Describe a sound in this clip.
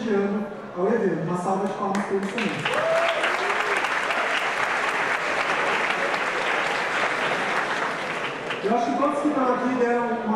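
A young man speaks through a microphone in a large hall.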